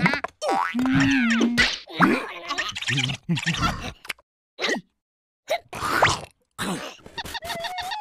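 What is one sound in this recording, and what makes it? Small cartoon creatures squeal and babble in high, silly voices.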